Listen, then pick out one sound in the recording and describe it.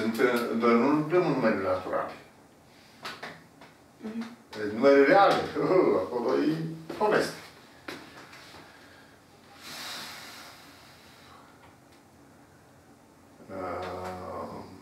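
An elderly man speaks calmly and clearly.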